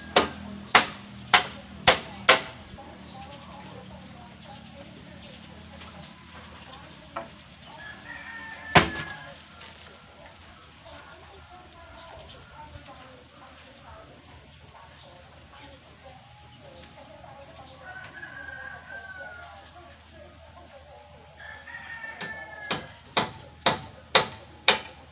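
A hammer knocks sharply on wood in quick bursts, outdoors.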